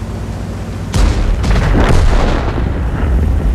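A shell explodes with a blast.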